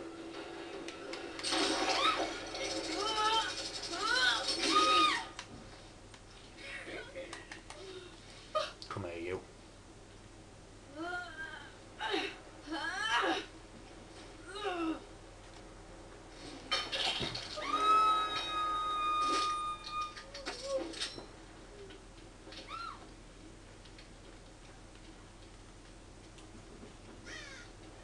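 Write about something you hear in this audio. Gunshots fire in short bursts from a game's speakers.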